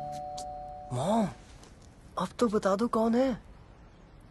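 A young man speaks softly.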